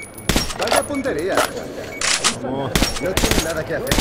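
A rifle is reloaded with a metallic click.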